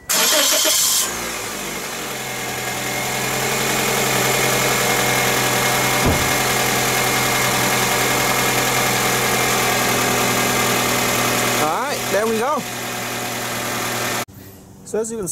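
A car engine starts and idles steadily.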